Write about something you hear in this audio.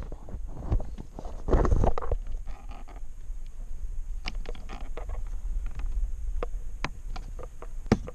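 Plastic clicks and taps as a small light fitting is handled.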